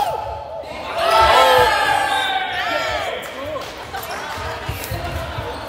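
Spectators chatter and call out nearby.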